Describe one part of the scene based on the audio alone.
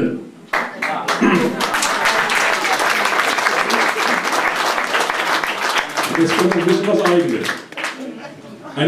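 An audience applauds and laughs loudly.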